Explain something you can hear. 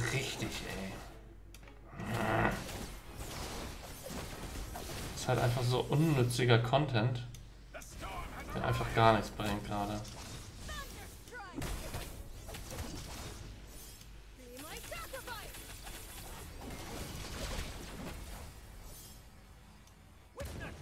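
Game effects whoosh and clash in a battle.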